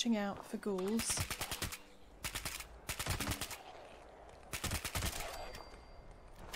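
A rifle fires several rapid bursts of shots close by.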